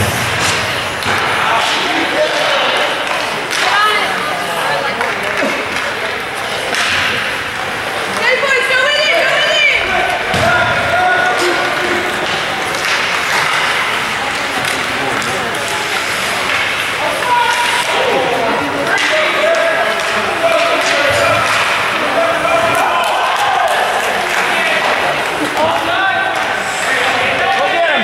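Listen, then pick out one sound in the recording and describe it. Spectators chatter and call out nearby in an echoing rink.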